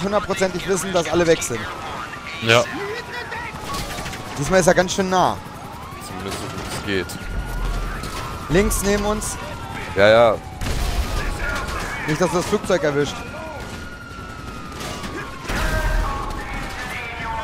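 A police siren wails steadily.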